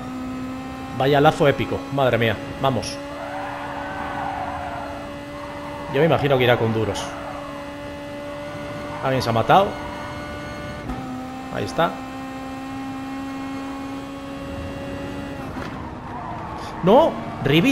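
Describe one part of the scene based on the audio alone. A racing car engine revs up and down sharply with gear changes.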